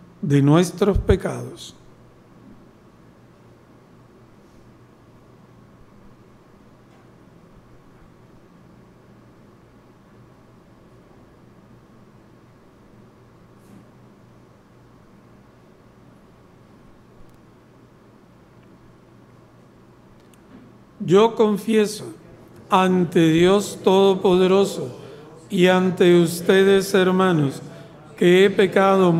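A man chants in a singing voice through a microphone.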